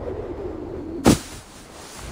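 A body lands on the ground with a heavy thud.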